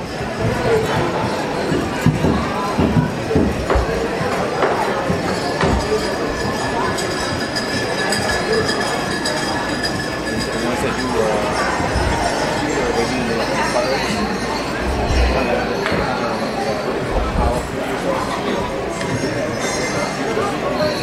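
A crowd murmurs outdoors.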